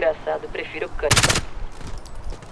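A rifle fires a short, sharp burst close by.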